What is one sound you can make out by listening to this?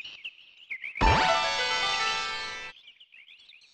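A short bright fanfare rings out and fades.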